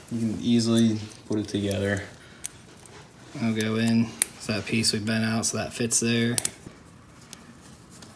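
Small metal parts click and tap together.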